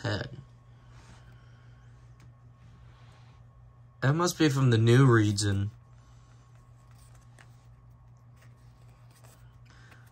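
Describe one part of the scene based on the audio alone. Playing cards slide and rustle softly as they are shuffled in hand.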